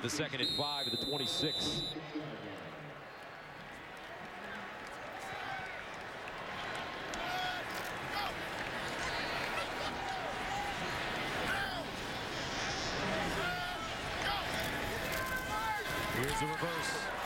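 A large stadium crowd roars and cheers, growing louder toward the end.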